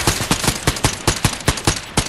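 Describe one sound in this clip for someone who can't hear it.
A laser gun fires rapid shots.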